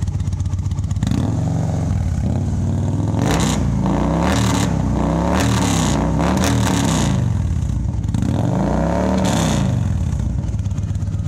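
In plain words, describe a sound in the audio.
A motorcycle engine revs loudly up and down several times.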